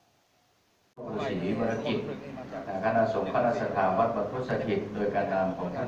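A group of men chant together in low, steady voices.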